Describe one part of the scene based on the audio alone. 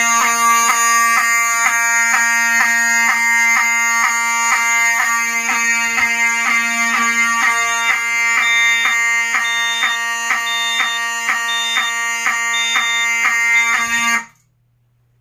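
A fire alarm horn blares loudly in a rapid, steady pulsing pattern, then stops abruptly.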